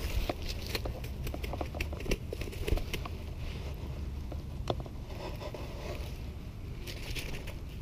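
A fish flaps and rustles on grass.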